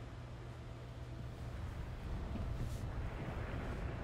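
Explosions rumble and boom.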